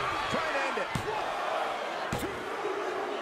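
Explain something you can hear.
A referee slaps the mat with his hand.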